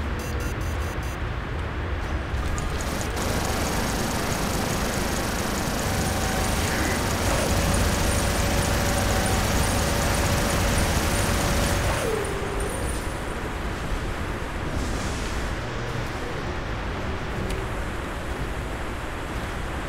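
Heavy metal footsteps thud steadily.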